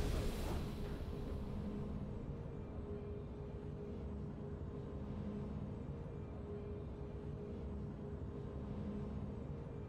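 Triumphant game music plays at a steady level.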